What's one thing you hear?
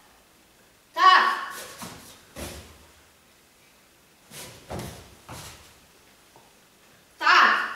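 A young girl gives short, sharp shouts.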